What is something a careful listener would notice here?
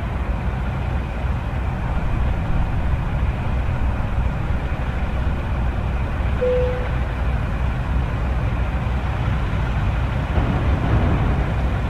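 A truck engine rumbles steadily as the truck drives slowly.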